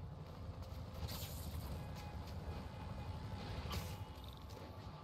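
Air whooshes past in bursts.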